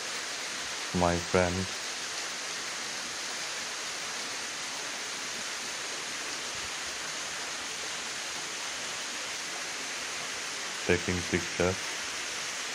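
A man speaks briefly and calmly close by.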